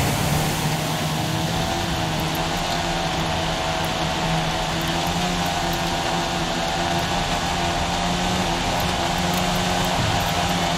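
A small car engine drones steadily at high revs.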